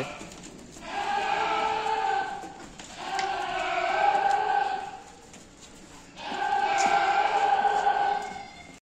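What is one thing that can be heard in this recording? Goats bleat loudly, again and again.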